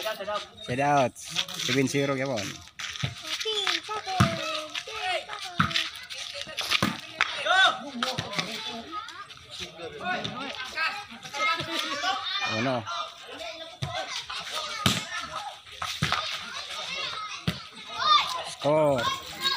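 A ball is kicked with sharp thuds.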